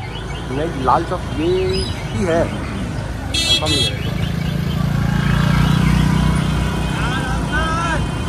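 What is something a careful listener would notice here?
Car and scooter engines hum past on a busy street.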